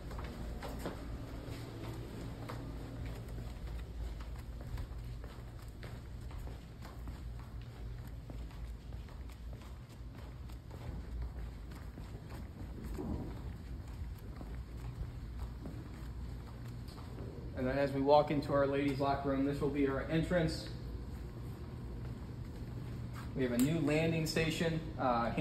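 Footsteps scuff on a concrete floor.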